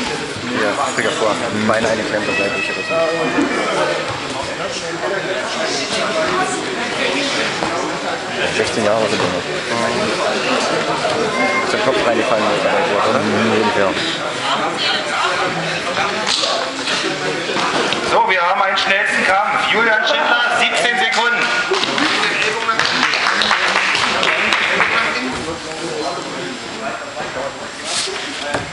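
Wrestlers scuffle and thump on a padded mat.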